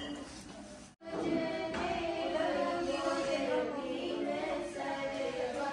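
Women sing together in a steady chant.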